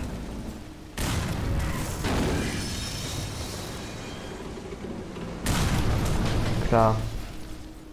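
Metal wreckage crashes down with a heavy rumble.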